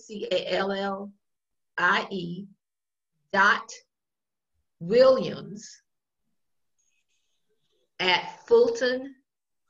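An elderly woman speaks calmly through an online call, in short phrases with pauses.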